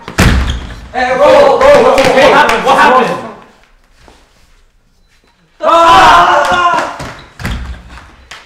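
Young men shout excitedly nearby.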